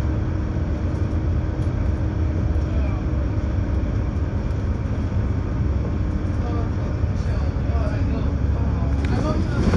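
A bus engine rumbles steadily as it drives along a road.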